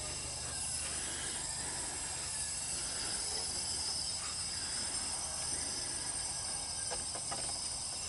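A small metal spring clicks and scrapes against an engine part.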